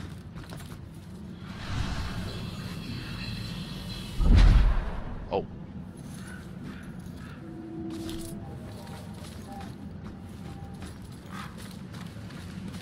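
Footsteps walk slowly on stone.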